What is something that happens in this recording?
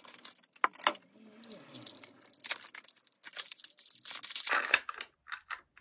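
A clear plastic lid clicks open.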